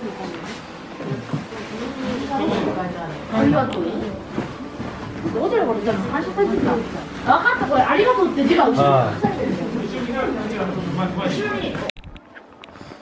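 Several adults and children chatter nearby in a lively crowd.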